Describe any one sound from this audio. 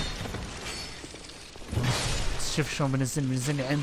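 A sword slashes into a creature with a wet thud.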